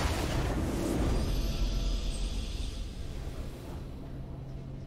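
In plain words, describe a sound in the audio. A triumphant game fanfare bursts out and quickly fades.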